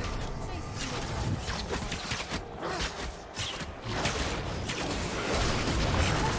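Spells whoosh and crackle in a fast-paced video game fight.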